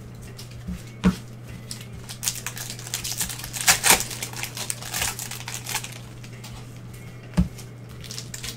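Cards flick and tap as they are shuffled.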